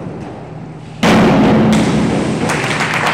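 A diver splashes loudly into water.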